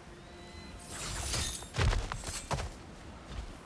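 An axe swings through the air and strikes with heavy thuds.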